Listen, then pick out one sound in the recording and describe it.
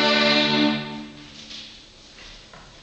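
A string quartet ends on a loud, sustained chord that rings out in an echoing hall.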